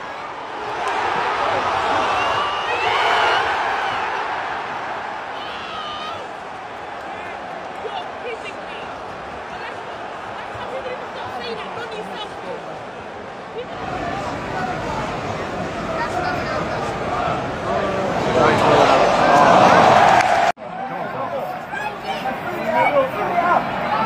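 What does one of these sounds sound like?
A large stadium crowd roars and cheers loudly, outdoors.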